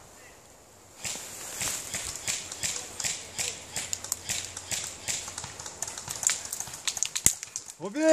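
A rifle fires rapid, sharp snapping shots outdoors.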